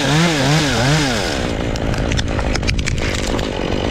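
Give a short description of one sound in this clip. A tree branch cracks and breaks off.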